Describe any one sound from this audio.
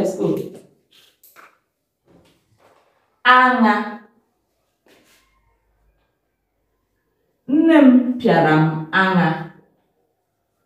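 A young woman speaks clearly and slowly, as if teaching, close by.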